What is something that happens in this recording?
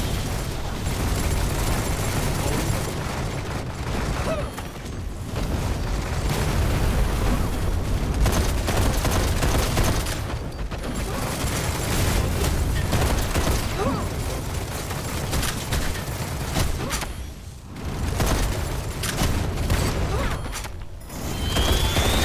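Energy guns fire in a video game.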